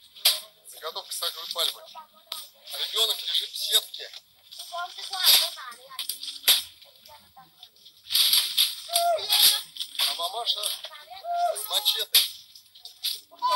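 Dry palm fronds rustle and crackle as a person pushes through them.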